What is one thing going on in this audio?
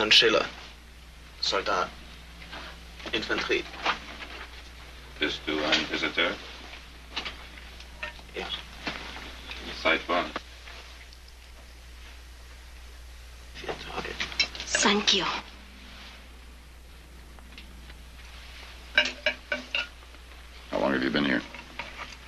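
A man speaks quietly and seriously, close by.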